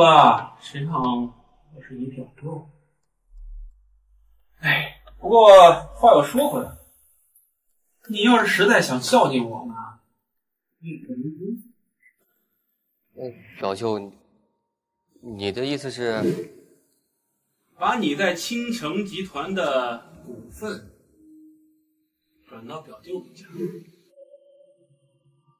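A young man speaks tensely and close by.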